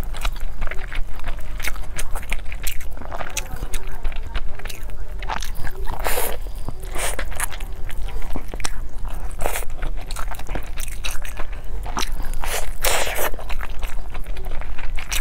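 A woman chews crunchy food close to a microphone.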